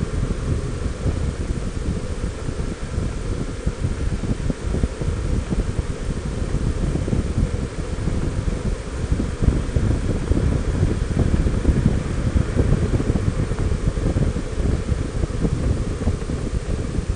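Wind buffets a microphone steadily while moving along a road.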